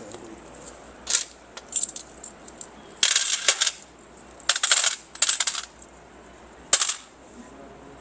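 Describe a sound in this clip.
Coins clink and tap against a small display stand.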